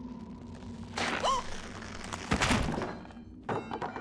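A young woman gasps and shrieks.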